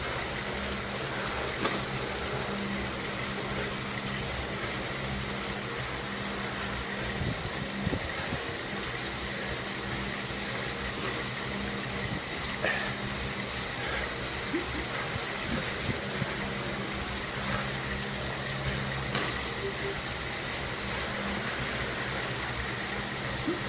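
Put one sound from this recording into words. A bike trainer whirs steadily under pedalling.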